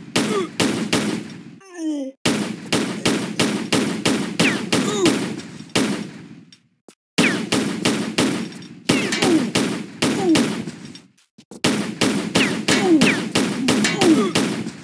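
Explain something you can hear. Pistol shots fire in rapid bursts, each ringing out briefly.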